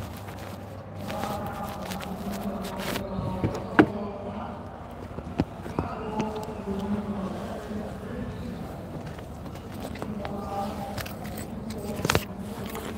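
A man speaks calmly, close to the microphone.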